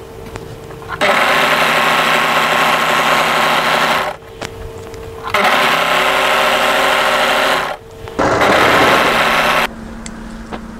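A sewing machine runs fast in loud bursts, stitching with a steady whirring hum.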